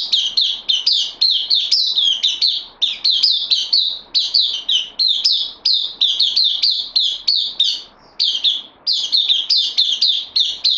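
A small bird sings a fast, bright string of high chirping notes up close.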